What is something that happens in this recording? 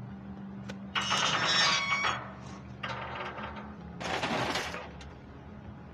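A metal shutter rattles loudly as it is pulled down.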